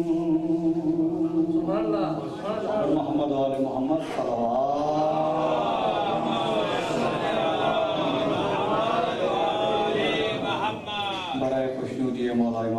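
A man chants with emotion into a microphone, heard through a loudspeaker in a reverberant room.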